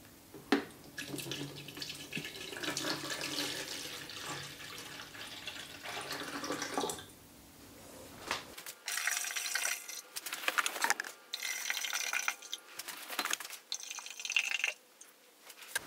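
Water pours from a plastic bottle into a plastic watering can.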